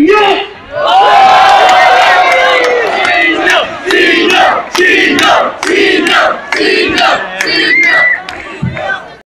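A crowd of young men chants loudly in rhythmic bursts, close by and distorted.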